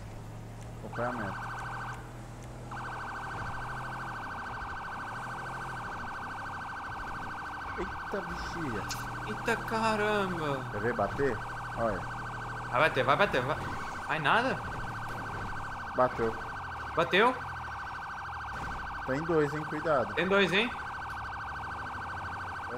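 A police siren sounds steadily.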